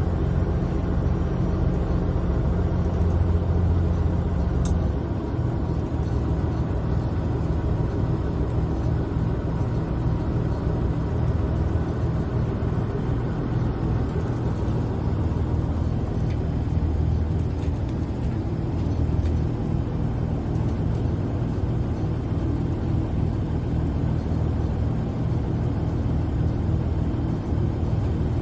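A boat's engine rumbles steadily up close.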